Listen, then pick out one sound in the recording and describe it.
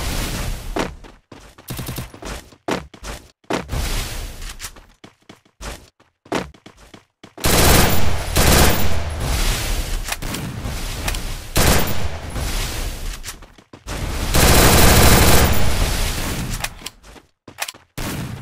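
Walls thud down one after another with a whooshing burst.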